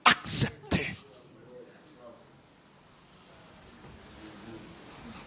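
A middle-aged man speaks quietly into a microphone.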